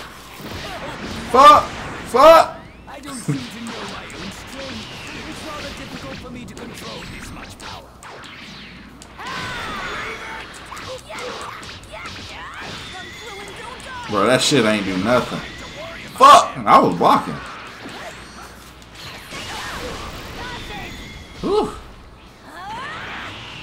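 Energy blasts burst and explode loudly.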